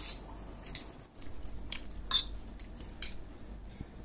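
A spoon scrapes a plate.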